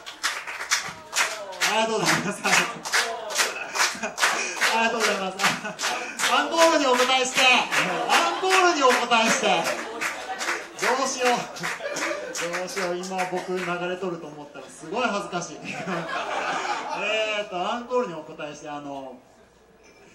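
A young woman talks and laughs into a microphone.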